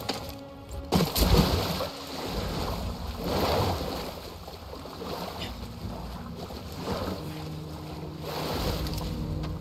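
Water splashes as a person swims.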